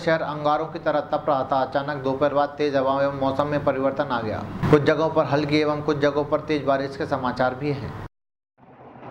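A young man speaks calmly and clearly into a microphone.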